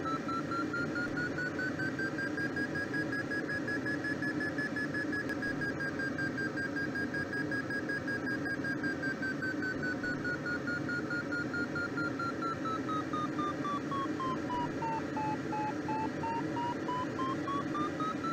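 A glider's variometer sounds a steady tone that slowly rises and falls in pitch.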